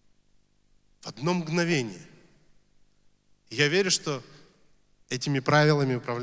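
A young man speaks expressively into a microphone through loudspeakers.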